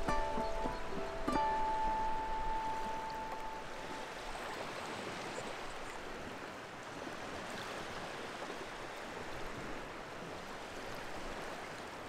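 Gentle waves wash onto a shore.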